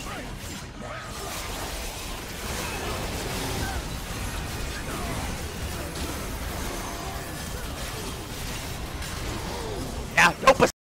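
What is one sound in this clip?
Fast game spell effects whoosh, zap and clash.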